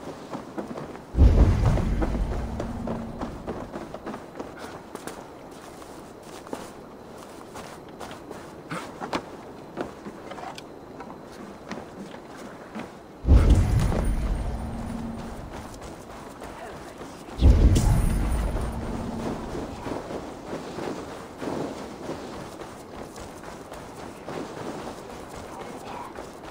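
Footsteps crunch and thud on snow and wooden boards.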